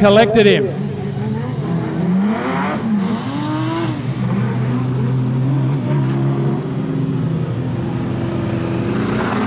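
Race car engines roar and rev.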